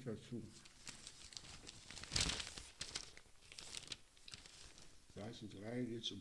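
Newspaper pages rustle and crinkle.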